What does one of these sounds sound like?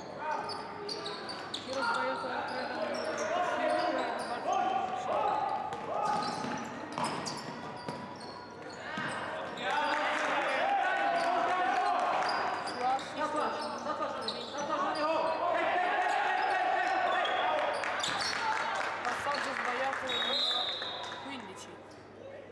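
Men shout and call out across the echoing hall.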